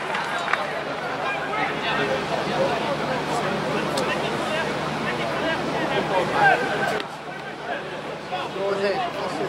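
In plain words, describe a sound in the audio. Men shout to each other on the pitch from a distance.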